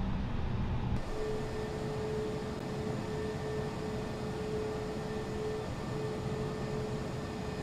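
Jet engines whine steadily outdoors.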